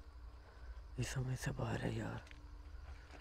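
A man speaks briefly and quietly close by.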